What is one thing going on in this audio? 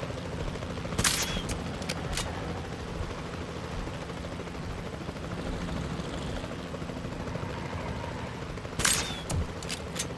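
A tranquilizer dart rifle fires.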